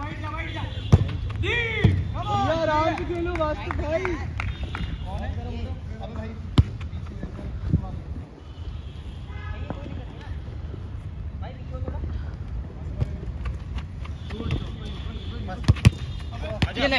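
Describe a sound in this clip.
A football thuds when it is kicked.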